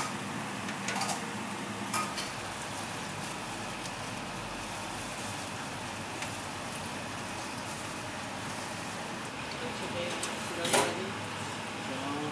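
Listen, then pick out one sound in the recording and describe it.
Liquid pours and splashes onto metal.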